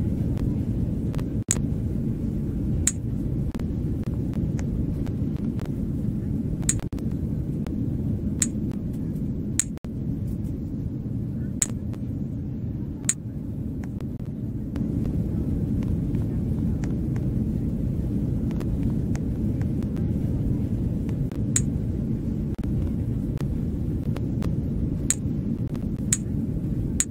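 A low, steady cabin rumble drones throughout.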